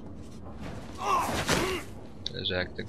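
A heavy blow lands with a thud.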